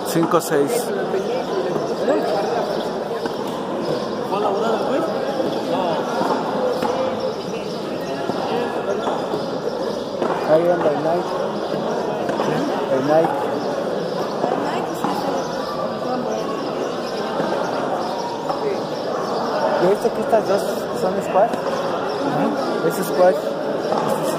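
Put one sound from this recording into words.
A ball smacks against a concrete wall in an echoing court.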